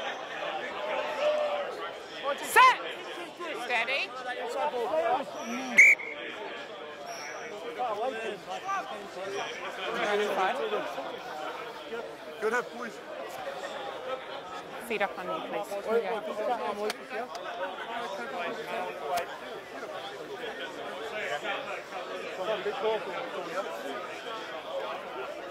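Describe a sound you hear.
Male players shout and call to each other across an open field.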